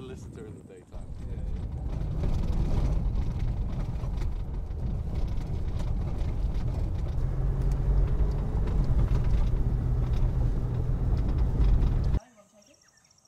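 A vehicle drives along a bumpy dirt road, rumbling and rattling.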